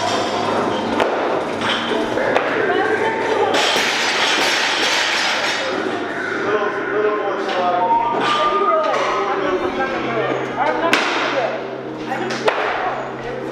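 Barbell plates clank as a weight is lifted and set down.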